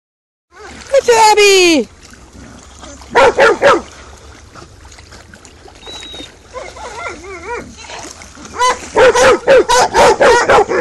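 Dogs splash and paddle through water.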